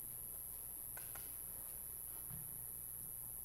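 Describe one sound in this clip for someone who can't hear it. A metal cup clinks softly against a hard surface.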